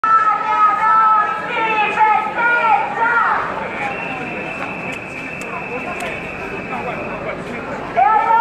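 A crowd of men and women chants loudly in unison outdoors.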